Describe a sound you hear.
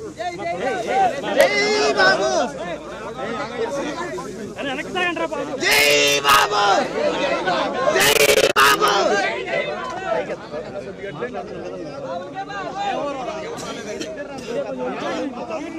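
Several men talk loudly over one another close by, outdoors.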